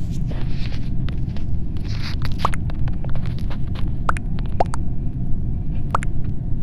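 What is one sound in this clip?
Keyboard keys click quickly as a message is typed.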